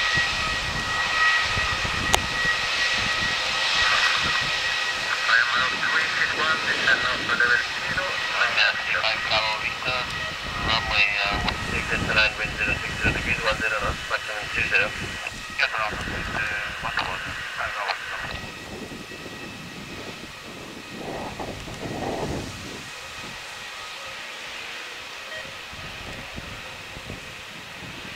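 A jet airliner's engines whine and hum steadily as it taxis close by.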